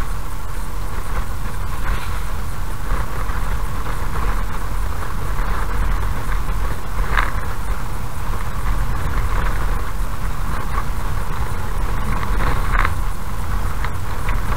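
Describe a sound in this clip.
Tyres rumble and crunch over a rough road surface.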